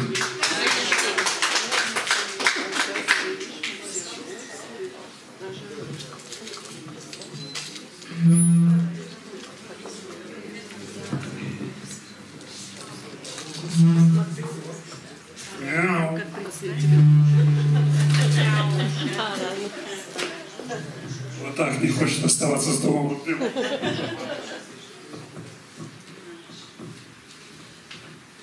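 An elderly man speaks calmly into a microphone, heard over a loudspeaker in an echoing room.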